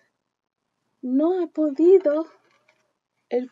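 A young woman reads aloud close by, in a lively, storytelling voice.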